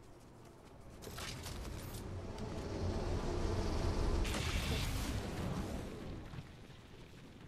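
A loud rushing whoosh swells and fades.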